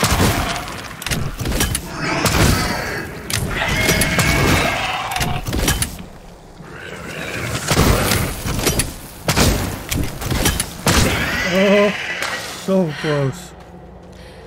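A creature roars and shrieks as it burns.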